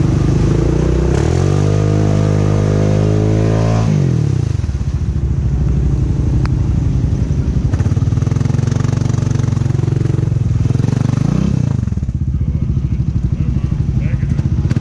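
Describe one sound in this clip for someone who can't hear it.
An all-terrain vehicle engine revs hard, rising in pitch, then drops back to a rough, chugging idle.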